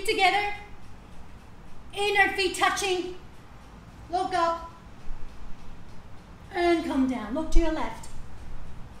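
A woman speaks calmly nearby, in short phrases.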